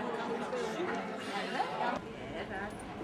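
Several people chatter in a room.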